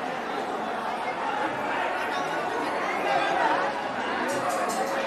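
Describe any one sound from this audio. A crowd of people murmurs and chatters.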